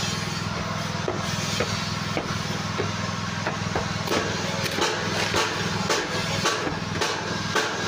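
Feet stamp down on packed soil with dull thuds.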